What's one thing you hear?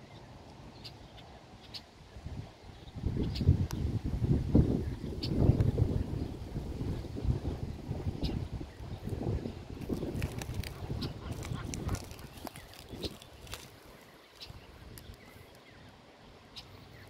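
Goslings peep softly and often.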